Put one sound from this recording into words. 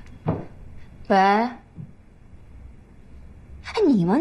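A young woman speaks into a phone, calmly.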